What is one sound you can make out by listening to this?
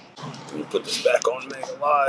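A finger taps on a touchscreen.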